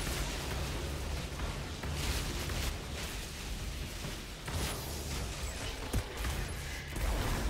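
Magical energy whooshes and swirls with low rumbling.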